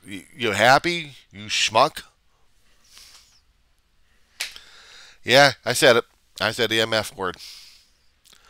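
A middle-aged man talks with animation into a headset microphone, close up.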